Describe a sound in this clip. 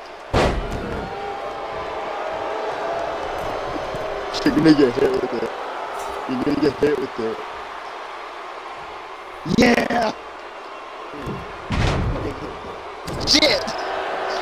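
A large crowd murmurs and cheers steadily in a big arena.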